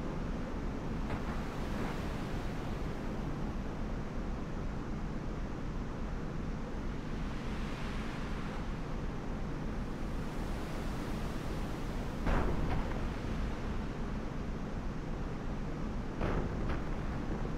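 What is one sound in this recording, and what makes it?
A tractor engine rumbles low and steadily close by.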